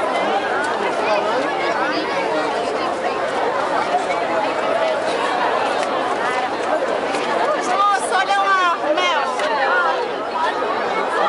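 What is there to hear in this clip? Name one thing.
A large crowd chatters and cheers outdoors.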